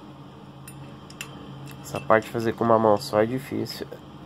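A metal fitting clicks as it is twisted by hand.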